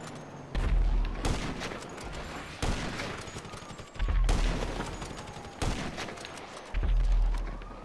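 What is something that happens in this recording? Sniper rifle shots crack and boom, one after another.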